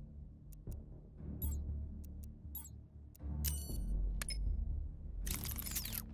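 Keypad buttons beep as a code is entered.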